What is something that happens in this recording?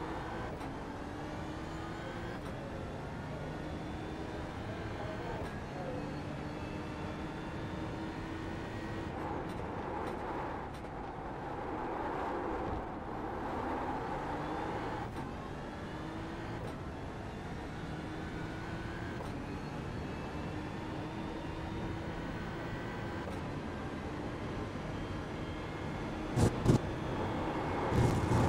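A race car engine revs high and changes pitch as gears shift up and down.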